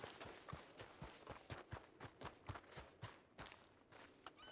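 Footsteps run quickly over dirt.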